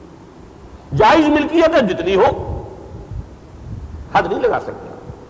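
An elderly man speaks with animation through a microphone, with pauses between phrases.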